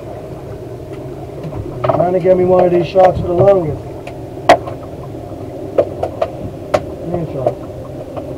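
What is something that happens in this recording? A boat engine idles with a low, steady hum.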